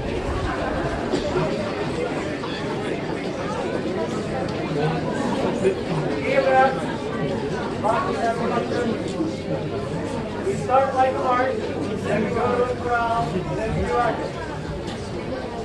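A brass band plays a lively tune outdoors.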